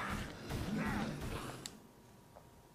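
Blows thud in a video game fight.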